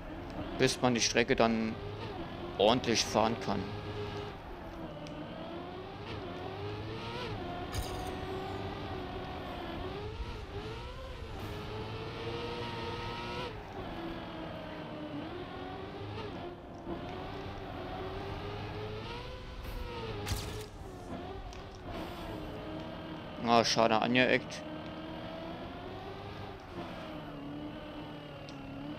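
A racing car engine hums and revs up and down steadily.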